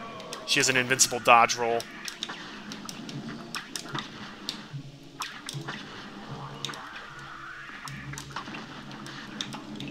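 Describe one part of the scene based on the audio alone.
Small game shots pop and crackle in quick bursts.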